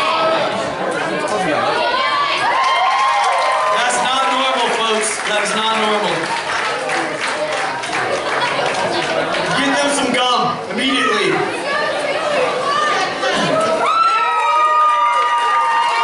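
A young woman sings through loudspeakers in a large hall.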